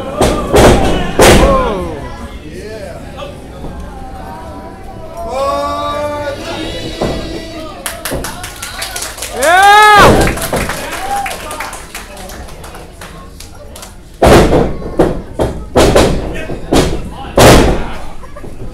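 Wrestlers slam onto a ring mat with loud thuds in a large echoing hall.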